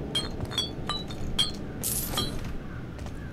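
Coins clink as a hand picks them up.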